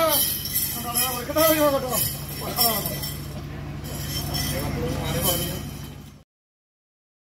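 A man chants loudly nearby.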